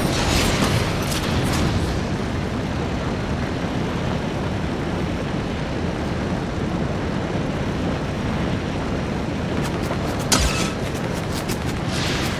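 A hovering craft's jet thrusters roar steadily.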